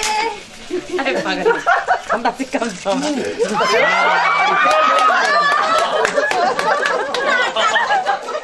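Women laugh loudly together.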